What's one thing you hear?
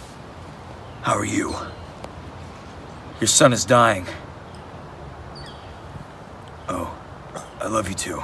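A man talks urgently into a phone, close by.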